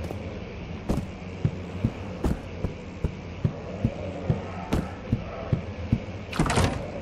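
Footsteps thud steadily on a wooden floor.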